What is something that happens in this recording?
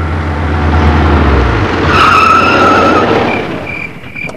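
A car engine rumbles loudly as a car drives up and slows to a stop.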